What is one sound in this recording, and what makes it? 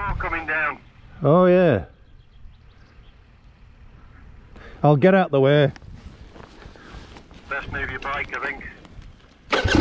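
A motorcycle engine revs in short, sharp bursts.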